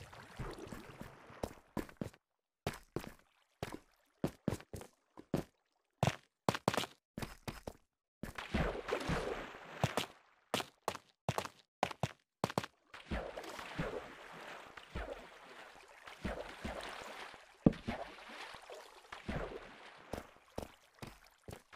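Footsteps tap on stone.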